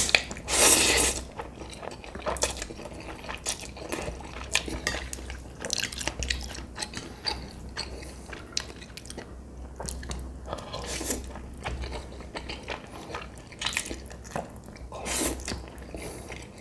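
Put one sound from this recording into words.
A man chews wetly, close to the microphone.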